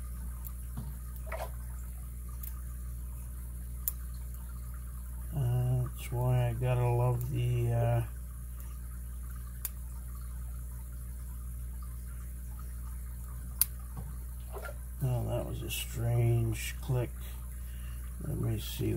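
Small metal picks click and scrape softly inside a lock.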